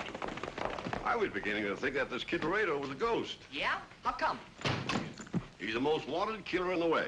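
Men talk with animation.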